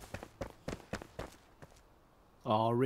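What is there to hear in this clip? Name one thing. Footsteps thud on stone.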